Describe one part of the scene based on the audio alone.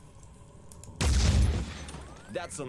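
A rifle fires a loud energy burst.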